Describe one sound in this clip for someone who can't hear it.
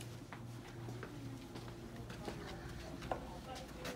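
Footsteps shuffle on a carpeted floor.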